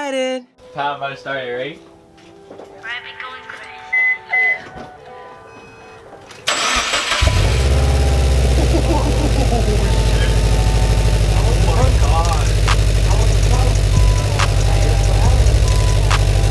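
A car engine rumbles through an exhaust.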